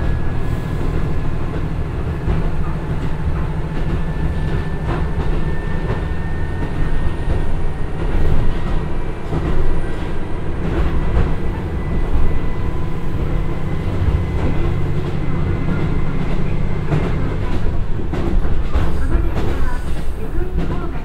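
A diesel train engine rumbles steadily.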